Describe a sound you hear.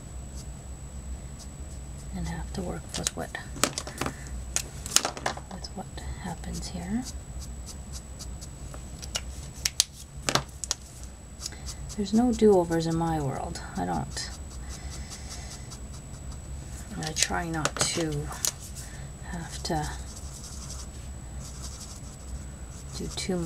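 A felt-tip marker squeaks and scratches softly across paper.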